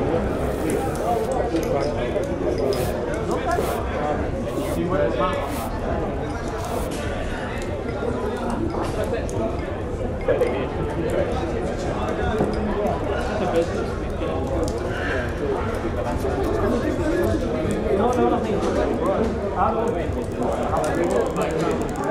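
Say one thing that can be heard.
A crowd of men and women chatter and laugh indoors.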